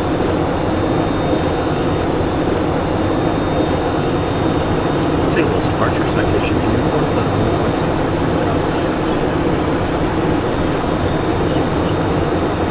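A jet engine roars steadily inside a cockpit.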